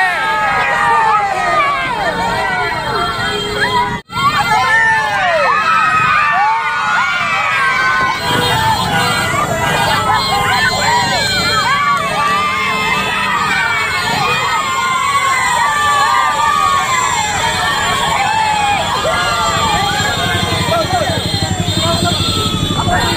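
A crowd of men and women cheers and shouts excitedly outdoors.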